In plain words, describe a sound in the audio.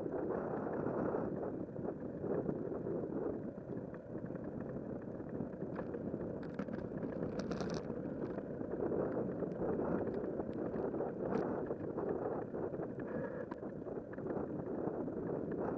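Wind rumbles steadily, outdoors while riding.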